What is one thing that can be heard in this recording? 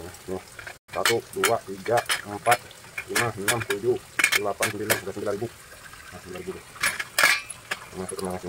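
Metal coins clink in a metal bowl.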